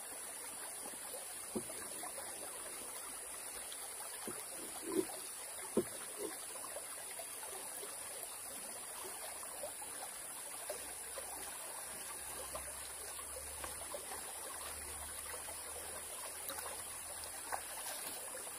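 Insects buzz steadily in the forest.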